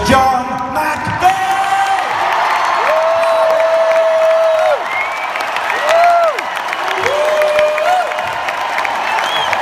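A large crowd cheers and screams loudly in a big echoing arena.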